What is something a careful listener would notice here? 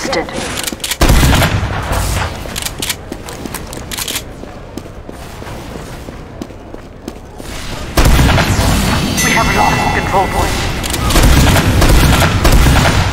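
A shotgun fires single loud blasts.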